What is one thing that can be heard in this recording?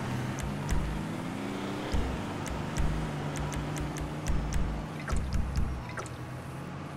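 Menu sounds click quickly one after another.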